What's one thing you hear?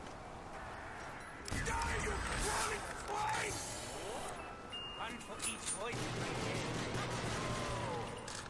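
Zombies snarl and groan nearby.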